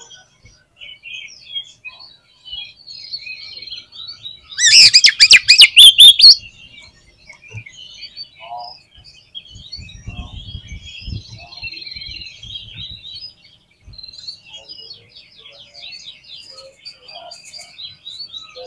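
A songbird sings a varied, chattering song throughout.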